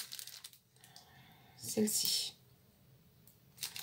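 A plastic sheet crinkles in a woman's hands.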